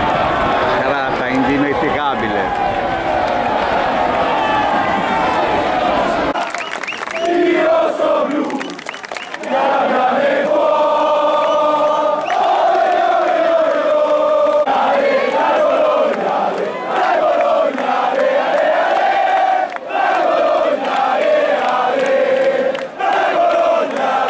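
A large crowd sings and chants loudly together.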